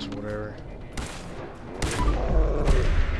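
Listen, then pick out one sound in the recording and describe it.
A laser rifle fires with sharp zaps.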